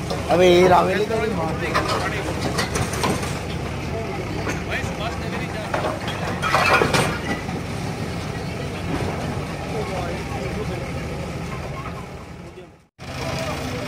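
A digger's diesel engine rumbles steadily.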